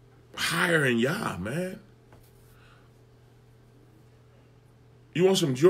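A man speaks with animation close to the microphone, in short bursts.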